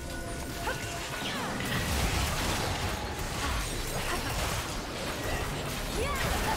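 Magic spells whoosh and crackle in a hectic video game battle.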